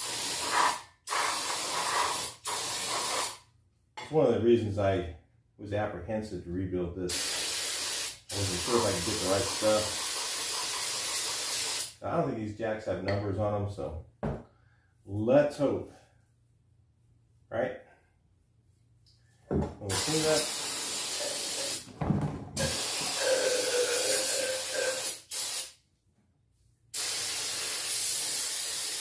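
An aerosol can sprays cleaner onto metal parts in hissing bursts.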